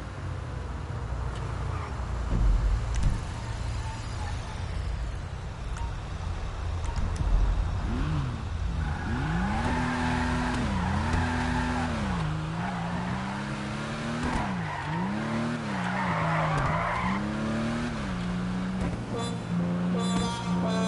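A car engine hums and revs up and down, rising and falling as it shifts gears.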